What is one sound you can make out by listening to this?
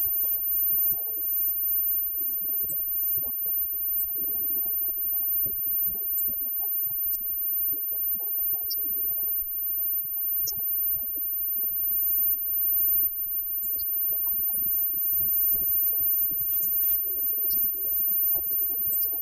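A live rock band plays loudly with electric guitars and bass.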